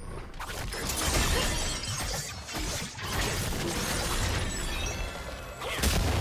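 Game spell effects crackle and whoosh in quick bursts.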